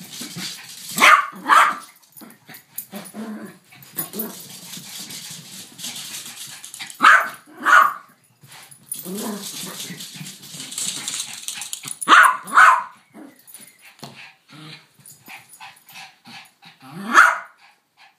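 A small Yorkshire terrier barks sharply in play.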